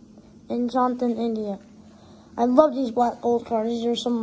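Stiff cards slide and rustle between fingers.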